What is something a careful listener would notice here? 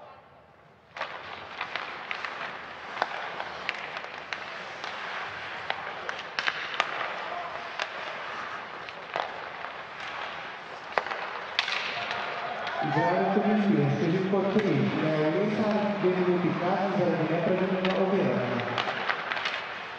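Hockey sticks click and clack against the puck.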